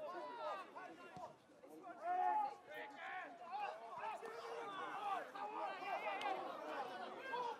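A crowd of men and women shout and cheer nearby outdoors.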